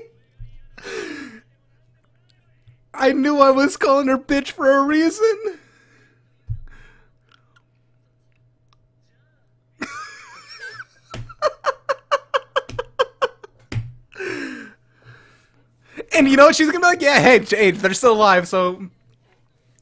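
A young man laughs loudly, close to a microphone.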